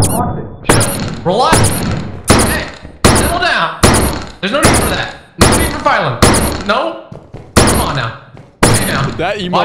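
A shotgun fires again and again, each blast ringing out in an echoing room.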